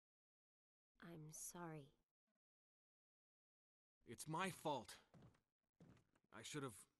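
A young woman speaks softly and sadly, close by.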